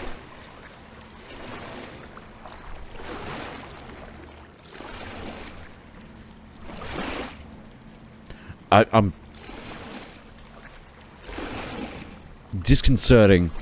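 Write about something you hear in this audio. Water sloshes softly with slow wading steps.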